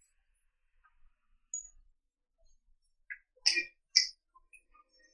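Billiard balls click against each other and thud off the cushions.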